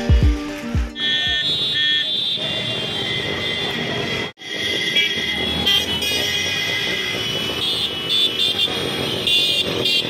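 Motorbike engines hum and rumble as traffic passes close by.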